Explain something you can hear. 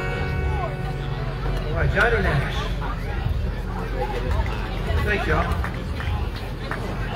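An acoustic guitar is strummed close by.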